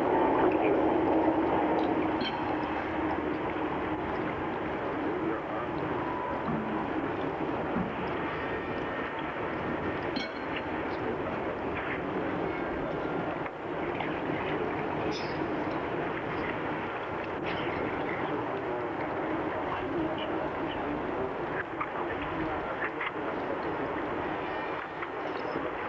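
A large outdoor crowd murmurs steadily.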